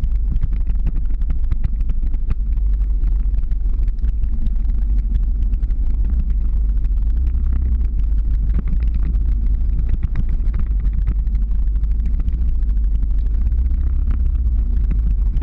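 Skateboard wheels rumble steadily on asphalt.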